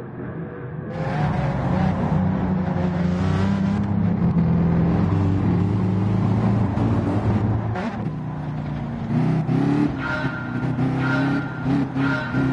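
A racing car engine revs up loudly close by, shifting through gears.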